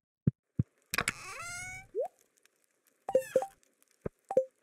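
A short chiming menu sound plays.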